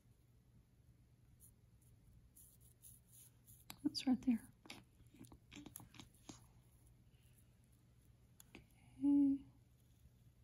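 A pen scratches lightly across fabric.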